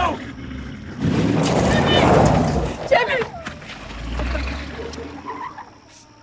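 A car engine roars as the car drives off.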